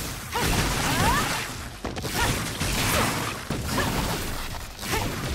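Heavy impacts thud repeatedly.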